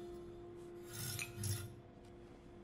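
Two mugs clink together.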